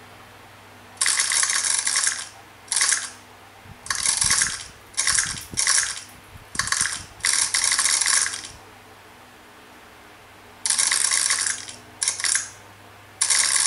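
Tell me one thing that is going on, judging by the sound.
A mobile game plays bursts of crunchy chopping sounds.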